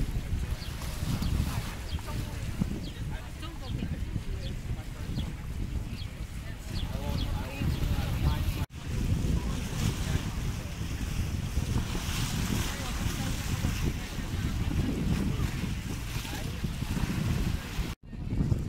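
Waves splash and lap against a stone edge.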